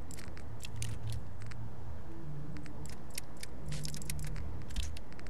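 Short electronic menu clicks tick in quick bursts.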